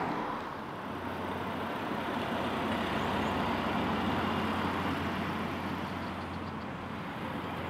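A car engine hums as a car drives slowly around a bend.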